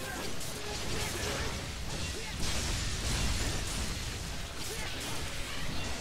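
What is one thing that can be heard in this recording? Blades clash and slash against a monster with sharp metallic hits.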